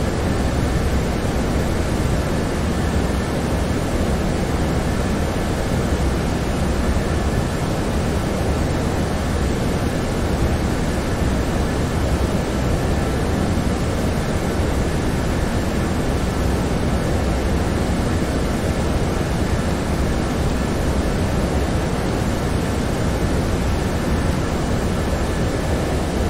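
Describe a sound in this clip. A steady, low roar of jet engines and rushing air fills an aircraft cockpit.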